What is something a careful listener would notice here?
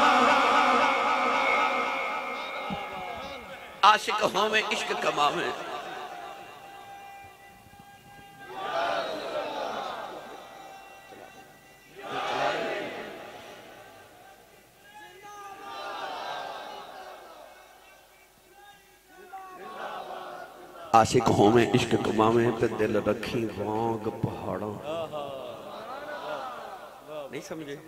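A man speaks passionately into a microphone over a loudspeaker, his voice echoing.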